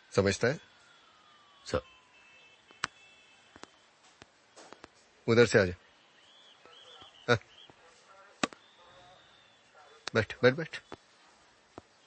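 A man speaks sharply at close range.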